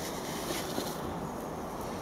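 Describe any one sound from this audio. Dry sand pours softly from a pot.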